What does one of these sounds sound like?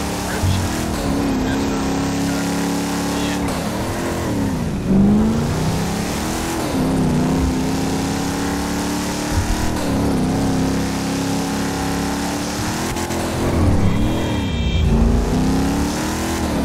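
A car engine roars steadily, dropping and rising in pitch as the gears shift.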